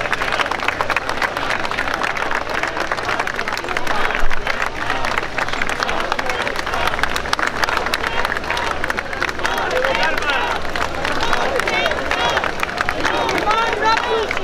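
A large crowd claps with many quick claps.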